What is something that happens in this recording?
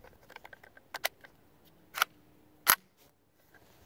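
A rifle's action clicks and clacks as it is worked.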